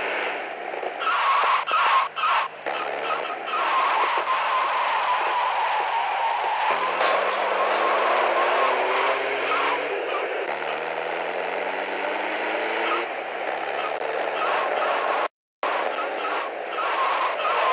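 A van engine hums and rises in pitch through its gears.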